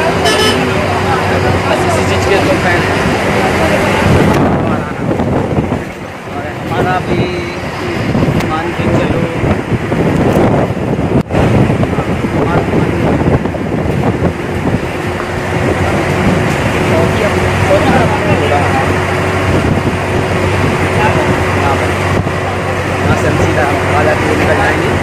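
Tyres roll and rattle over a rough road.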